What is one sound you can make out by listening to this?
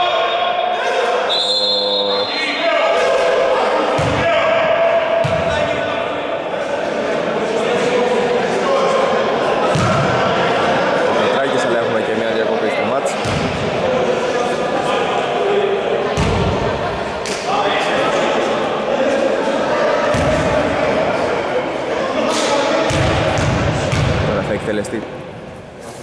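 Men talk and call out across an echoing hall.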